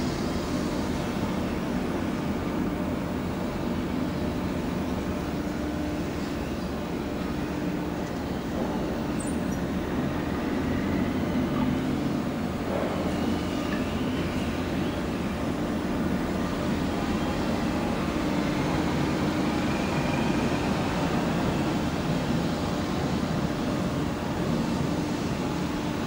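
A ship's engine rumbles steadily nearby.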